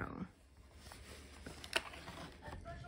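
A plastic food container crinkles.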